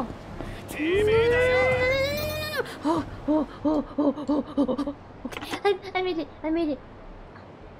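A young woman speaks playfully into a microphone.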